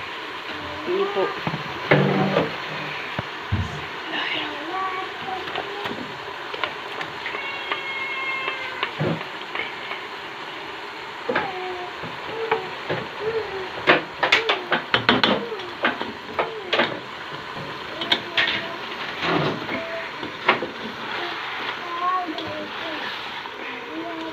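A spatula scrapes and knocks against a pot.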